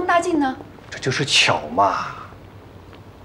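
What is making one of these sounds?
A young woman speaks softly and calmly.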